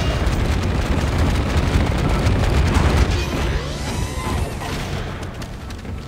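A monstrous creature screeches nearby.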